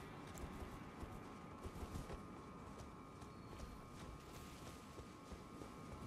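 Footsteps rustle through tall grass at a run.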